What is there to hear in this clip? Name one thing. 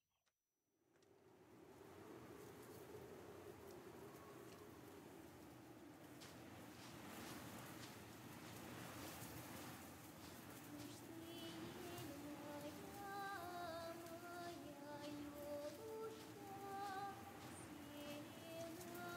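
Tall grass rustles as a person walks through it.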